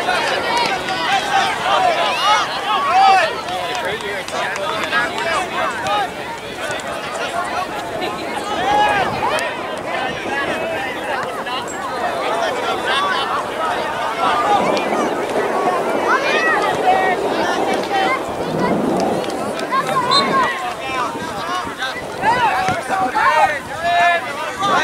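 Young players and spectators shout and call out across an open field.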